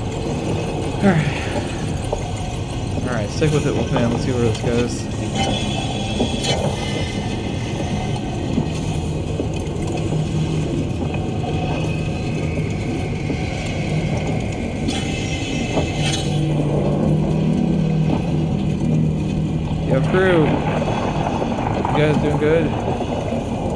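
An underwater vehicle's motors hum steadily.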